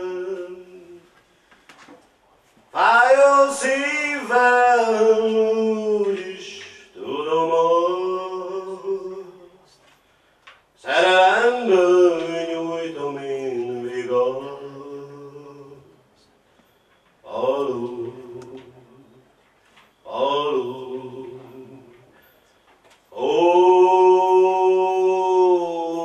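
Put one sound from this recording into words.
A middle-aged man sings slowly into a microphone, heard through a loudspeaker.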